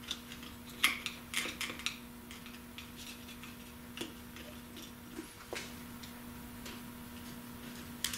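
A metal tool clicks and scrapes against a metal hub.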